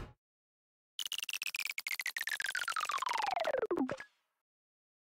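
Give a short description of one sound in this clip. A falling whistle glides down in pitch.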